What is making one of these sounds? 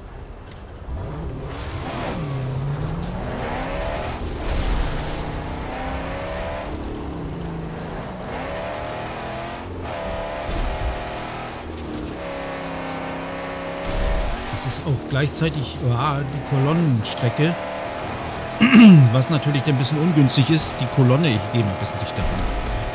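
A car engine roars and revs as the car drives over rough ground.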